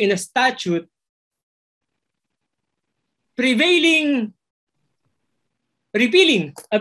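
A man speaks calmly through a microphone in an online call, in short phrases with pauses.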